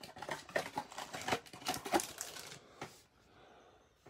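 Foil card packs crinkle and rustle in hands.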